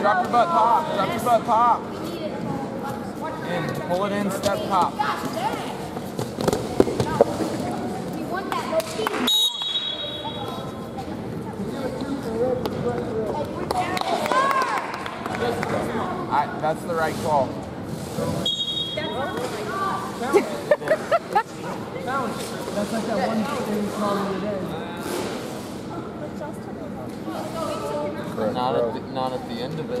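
People shout encouragement loudly in an echoing hall.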